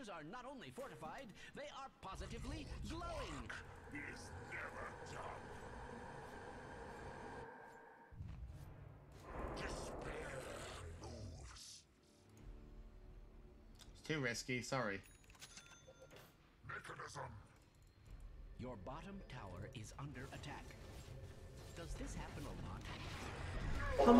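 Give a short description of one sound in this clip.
Game sound effects clash and whoosh.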